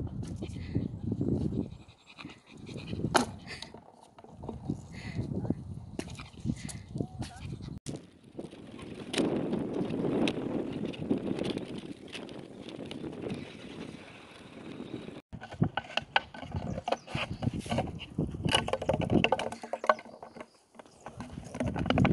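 A small dog's claws tap on paving stones.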